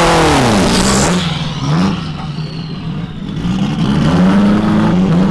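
A car engine roars as a car speeds away.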